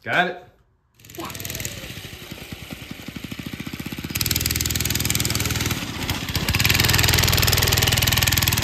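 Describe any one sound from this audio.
A small go-kart engine runs with a fast, rattling putter, growing louder.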